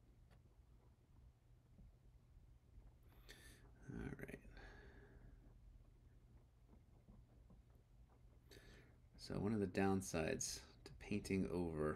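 A palette knife scrapes softly on a canvas.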